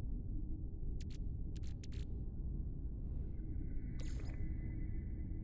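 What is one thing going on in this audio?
Short electronic clicks sound as a game menu is browsed.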